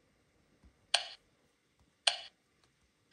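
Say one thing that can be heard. Menu clicks sound through a small speaker.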